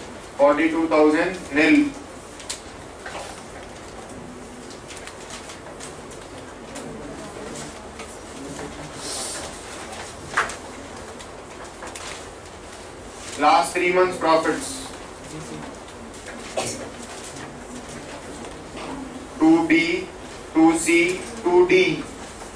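A man speaks with animation through a microphone, in short bursts with pauses.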